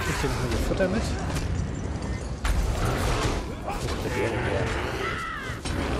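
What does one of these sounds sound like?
A bear growls.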